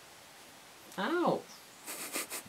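A cat meows once, close by.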